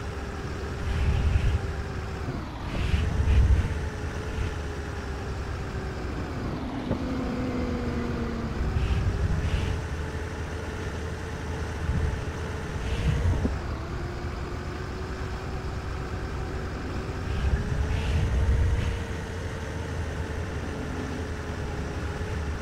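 Vehicles pass by with a rushing whoosh.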